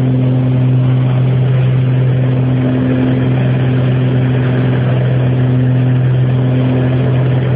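A small plane's engine drones steadily and loudly from close by.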